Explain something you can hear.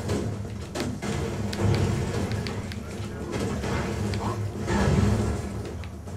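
Explosions boom in quick bursts.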